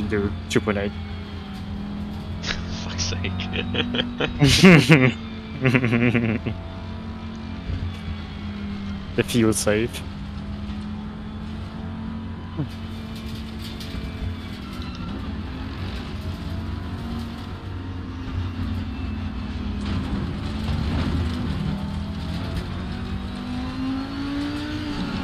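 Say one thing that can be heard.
A race car engine drones steadily, rising and falling in pitch with the gears.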